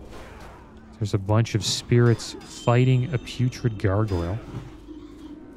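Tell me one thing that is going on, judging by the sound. A man talks close to a microphone.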